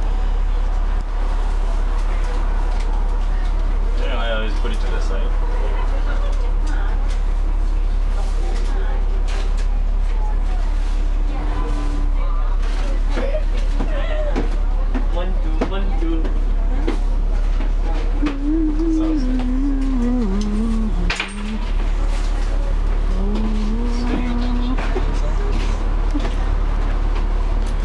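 A bus engine rumbles with a steady low hum.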